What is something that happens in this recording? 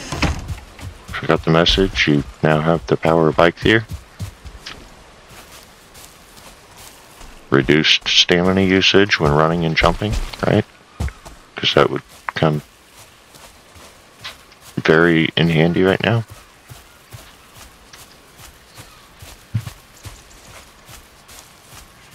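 Footsteps thud softly on grass at a running pace.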